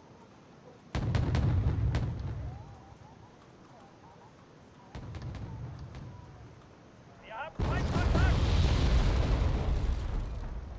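Heavy gunfire booms and rumbles in bursts.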